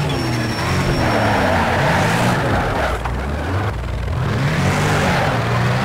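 Tyres screech on wet asphalt through a tight corner.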